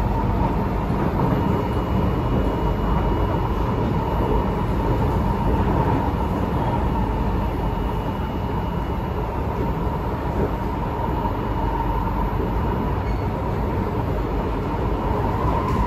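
A train's electric motors whine steadily.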